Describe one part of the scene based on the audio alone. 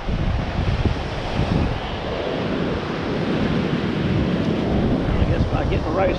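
Shallow waves wash over the sand.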